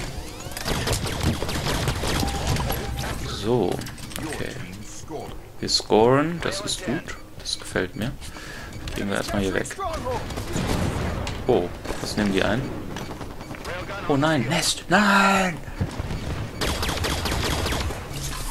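Energy gunshots fire in quick bursts.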